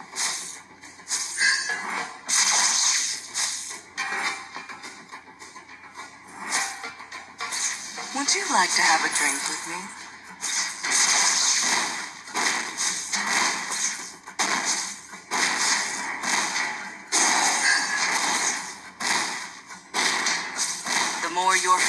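Game sound effects and music play from a phone speaker.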